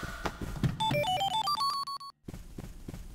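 A bright chime of rising notes rings out.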